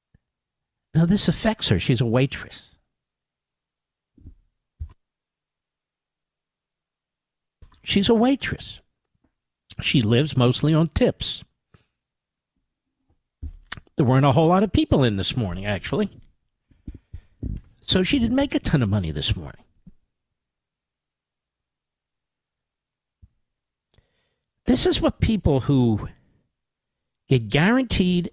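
A man speaks calmly into a microphone, with pauses.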